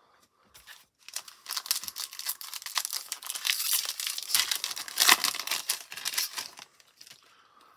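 A foil pack wrapper crinkles and tears as it is ripped open.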